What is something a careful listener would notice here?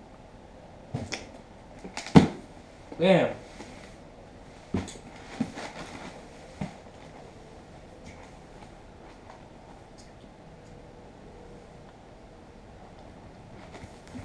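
A cardboard box knocks and rustles in a man's hands.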